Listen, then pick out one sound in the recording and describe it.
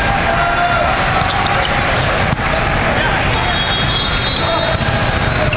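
A steady din of many games echoes through a large hall.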